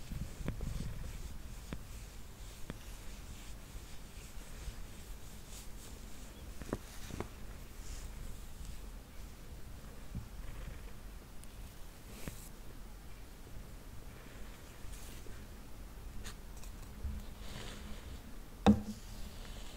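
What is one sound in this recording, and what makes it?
A cat purrs softly close by.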